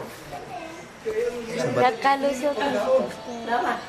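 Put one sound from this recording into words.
Young people talk nearby.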